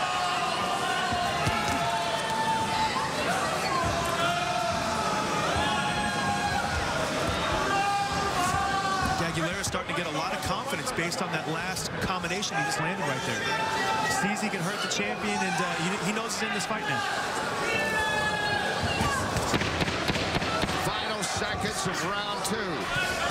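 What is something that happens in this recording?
Punches thud on a boxer's body.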